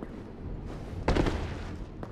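A heavy body thuds as it lands from a drop.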